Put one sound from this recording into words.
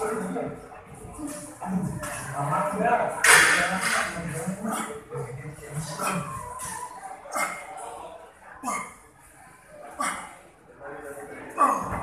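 A man breathes hard and grunts with effort.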